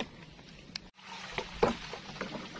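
Water splashes and laps against a small wooden boat.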